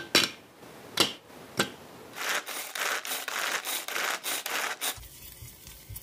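A hand food chopper clicks and whirs as it spins.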